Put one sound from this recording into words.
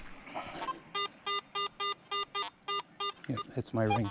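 A metal detector beeps in quick, repeated tones.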